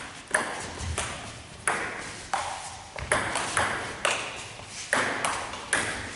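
A ping-pong ball clicks back and forth off paddles and a table, echoing in a large hall.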